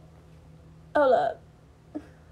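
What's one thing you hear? A young woman speaks briefly and close by.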